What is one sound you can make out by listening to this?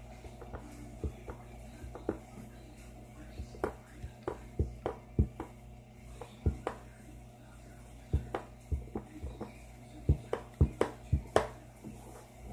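A plastic pen taps and clicks sharply on a hard tabletop.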